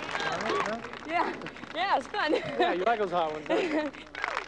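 A woman laughs loudly nearby.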